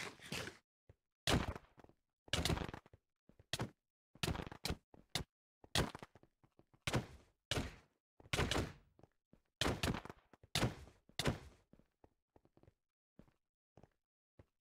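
Short game hit sounds thud again and again.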